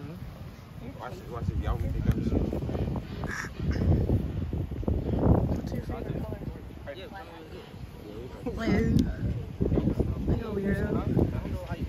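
Young men talk with each other outdoors, close by.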